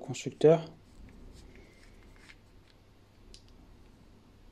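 Small hard parts click softly as they are handled close by.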